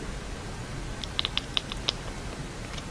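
A cat chatters with quick, sharp clicks.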